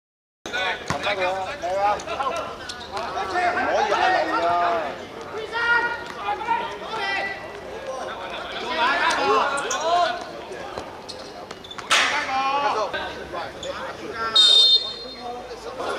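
A football is kicked hard on an outdoor court.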